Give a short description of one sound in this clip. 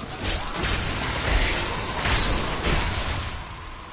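Magic spell blasts and hits crash in a video game fight.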